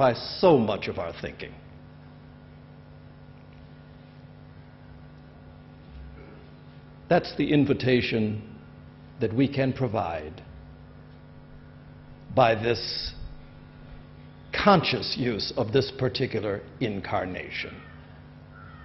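A man speaks calmly into a microphone, pausing between phrases.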